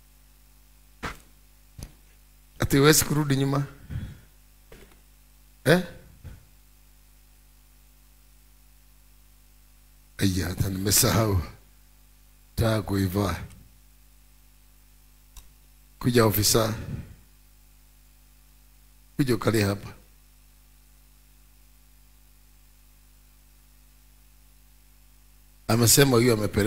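A man speaks loudly in short bursts with long pauses, through a microphone.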